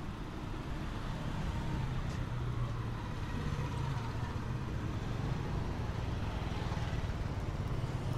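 A motor scooter putters past close by.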